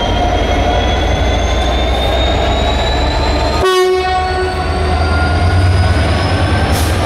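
Train wheels squeal and screech on the rails.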